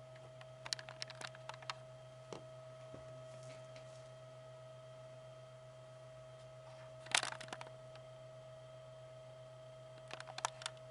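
A slot machine hums steadily.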